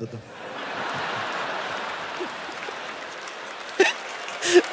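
An audience laughs in a large hall.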